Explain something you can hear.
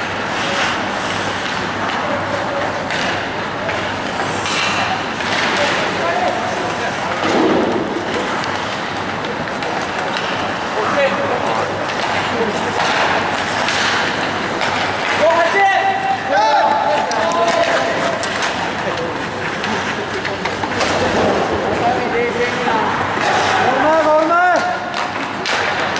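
Skates scrape and hiss across the ice in an echoing rink.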